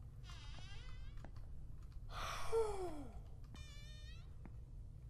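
A young man exclaims and yelps loudly into a close microphone.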